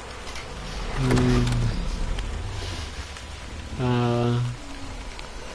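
A large creature lets out deep, low groaning calls.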